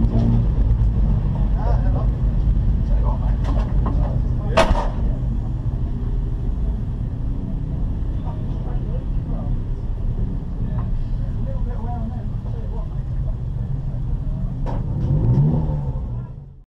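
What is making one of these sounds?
A race car engine idles with a low, steady rumble inside the cabin.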